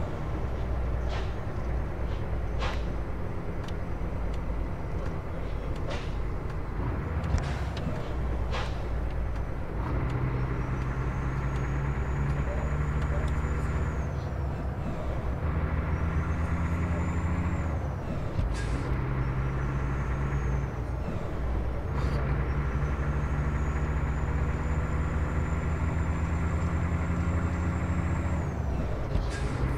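A truck engine rumbles and revs as it drives.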